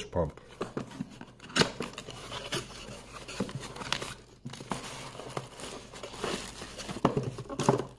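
Cardboard scrapes and rustles as a box is opened.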